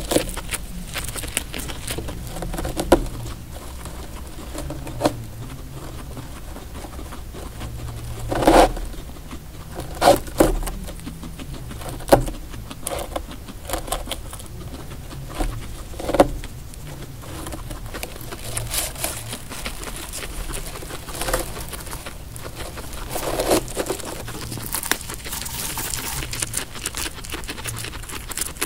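Dry hay rustles as a guinea pig tugs at it.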